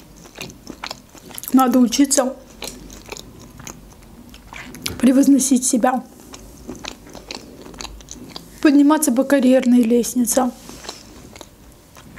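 A young woman chews food with soft, wet mouth sounds.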